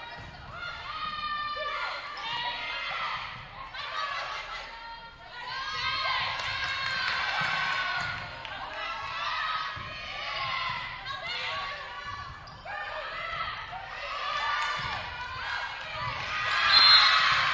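A volleyball is struck with dull thumps.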